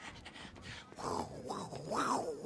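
A crowd cheers and whoops.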